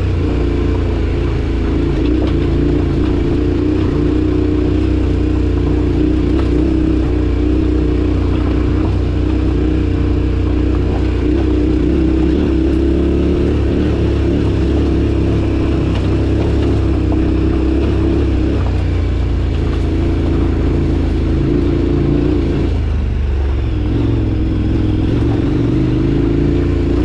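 A motorbike engine drones steadily close by.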